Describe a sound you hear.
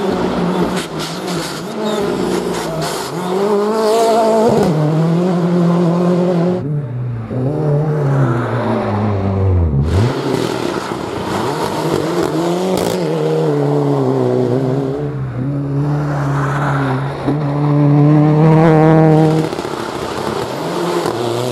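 Rally car engines roar loudly, revving high and dropping as cars speed past one after another.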